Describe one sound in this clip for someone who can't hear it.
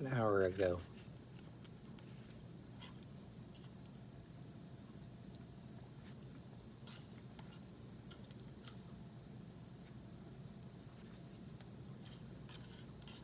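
A stirring stick taps and scrapes softly inside a small can.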